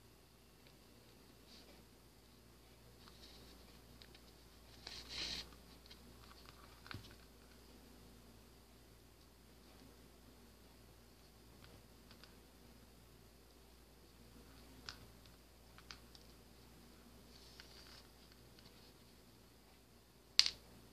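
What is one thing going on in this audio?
Hands handle small crafting pieces, with soft rustles and light taps on a table.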